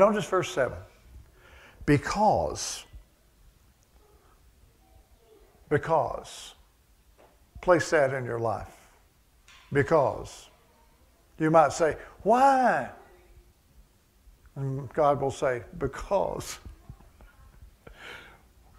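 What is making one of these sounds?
An older man speaks with emphasis in short bursts, close to a microphone.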